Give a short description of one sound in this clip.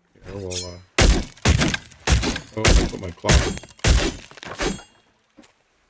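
Sharp axe blows crack into a wooden barrel.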